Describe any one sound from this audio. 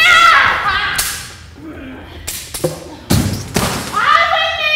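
Swords clash and clang against wooden shields.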